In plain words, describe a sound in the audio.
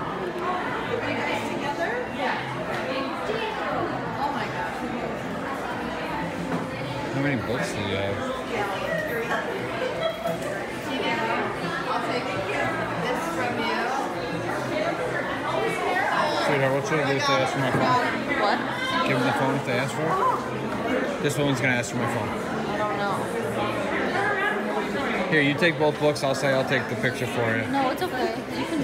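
A crowd of women chatter close by indoors.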